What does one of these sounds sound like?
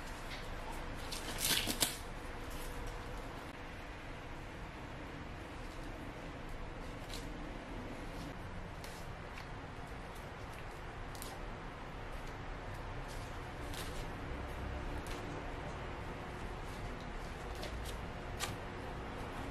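Corn husks rustle and crinkle as a hand handles them.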